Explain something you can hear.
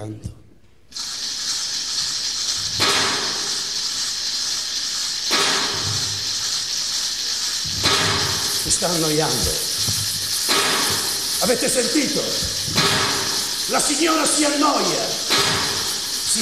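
Mechanical machines clatter and whir.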